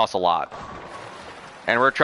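Bowling pins crash and scatter.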